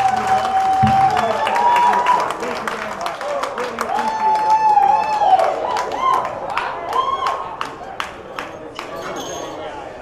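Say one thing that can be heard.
An audience claps and cheers in a room.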